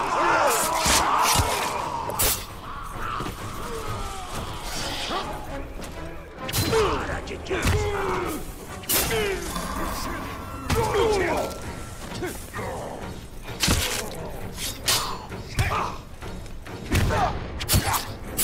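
Creatures grunt and scream as they are struck.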